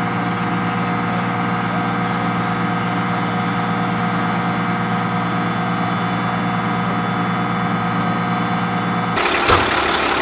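A heavy vehicle engine idles with a steady low rumble.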